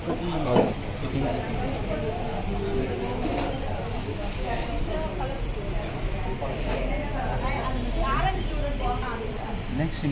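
Silk fabric rustles as it is unfolded and handled.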